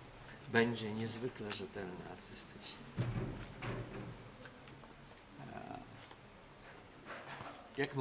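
A middle-aged man speaks close by, calmly and haltingly.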